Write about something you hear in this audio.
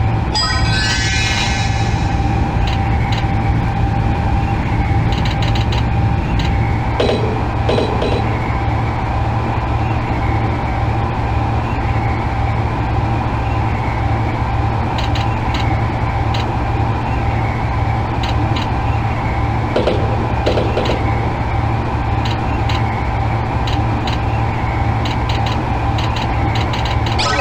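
A train hums and rumbles steadily along the rails.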